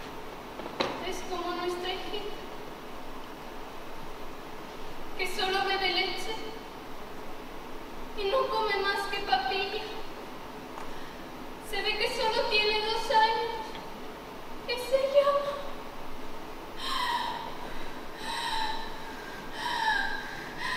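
A young woman speaks slowly and expressively, in bursts with pauses.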